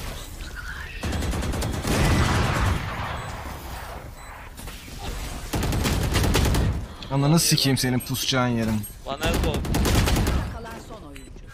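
Rapid gunshots crack from a game.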